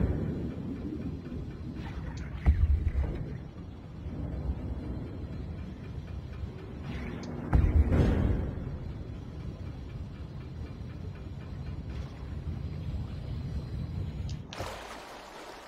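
A small submarine's motor hums and churns underwater.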